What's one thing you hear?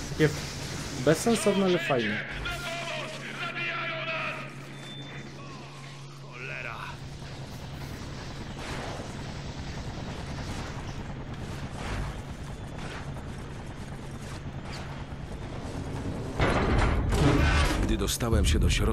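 A young man talks into a headset microphone.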